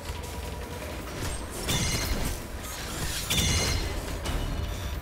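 Loud video game impacts and blasts crash during a fight.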